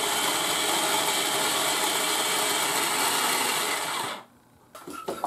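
A food processor whirs loudly, then stops abruptly.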